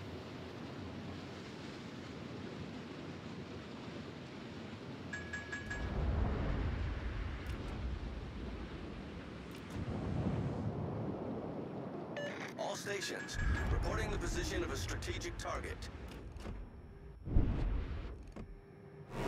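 Sea water rushes against a warship's hull.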